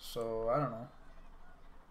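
A young man speaks a short phrase close to a microphone.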